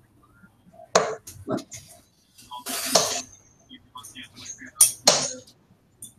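Darts thud into a bristle dartboard.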